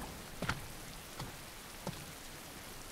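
Heavy footsteps clank slowly on a hard floor.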